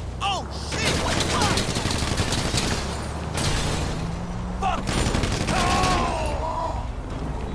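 Two men talk with animation.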